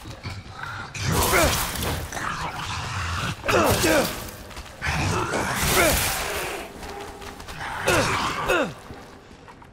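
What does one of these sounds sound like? Monstrous creatures shriek and screech in harsh, gliding bursts.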